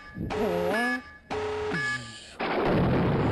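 A young man calls out loudly and with animation close by.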